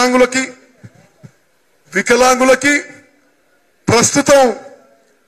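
A middle-aged man speaks forcefully into a microphone over loudspeakers, in bursts with pauses.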